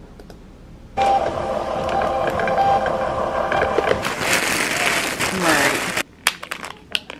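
A label printer whirs as it prints.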